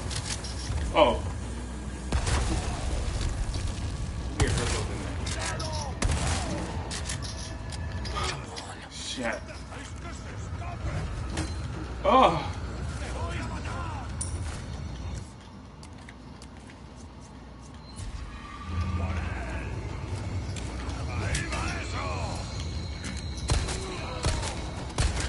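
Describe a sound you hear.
Gunshots bang sharply several times.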